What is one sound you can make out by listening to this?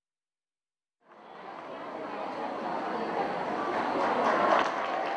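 Dancers' feet shuffle and stamp on a wooden stage.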